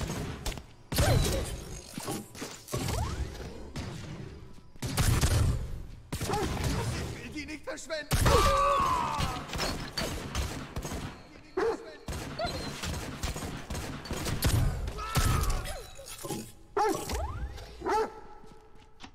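Electric energy weapon blasts crackle and roar loudly.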